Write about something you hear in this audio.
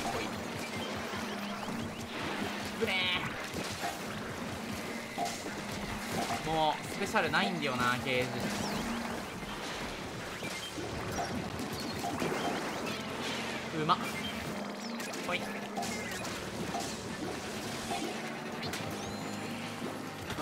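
Ink guns splatter and squirt in quick bursts.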